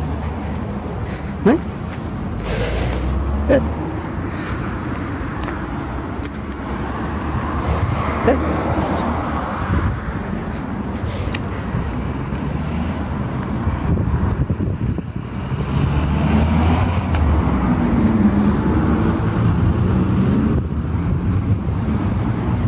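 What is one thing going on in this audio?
Traffic rumbles steadily on a nearby road, growing louder toward the end.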